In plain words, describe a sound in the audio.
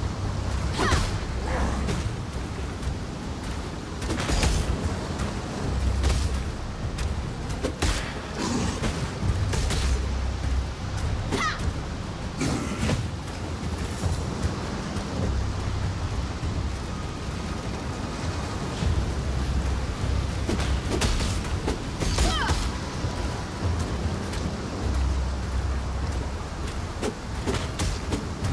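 Magic blasts and blows crash and whoosh repeatedly.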